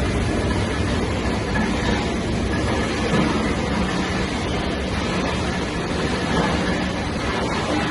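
A large machine rumbles and clatters steadily and loudly.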